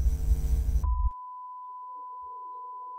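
A steady high test tone sounds.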